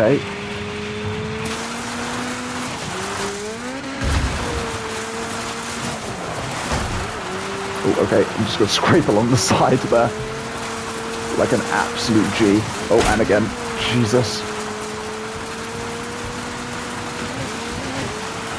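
A rally buggy engine drones steadily, its pitch rising and dipping with gear changes.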